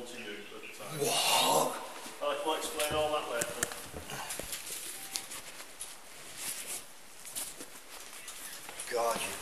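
Clothing rustles against a body-worn microphone.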